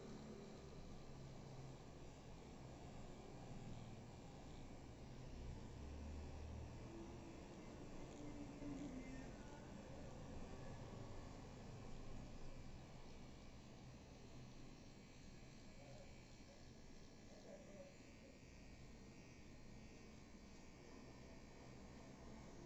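A handheld electric pen buzzes steadily close by.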